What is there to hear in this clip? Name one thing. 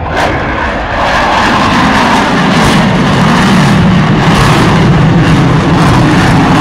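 A jet engine roars loudly overhead with a deep, steady rumble.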